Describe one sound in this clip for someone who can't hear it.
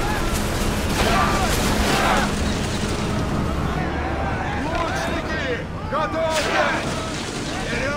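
Ship timbers smash as one ship rams another.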